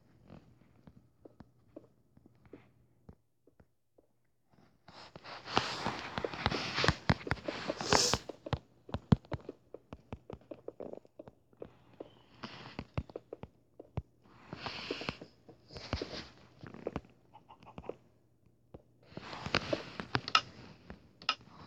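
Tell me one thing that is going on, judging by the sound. Blocks are placed with short, soft thuds.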